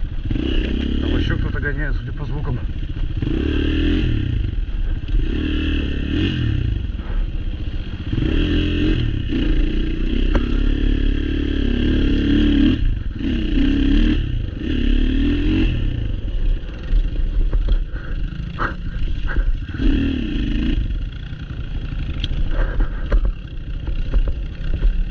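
Tyres crunch and bump over a rough dirt trail.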